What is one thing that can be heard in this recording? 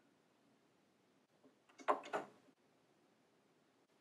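A record player's tonearm is handled with a soft click.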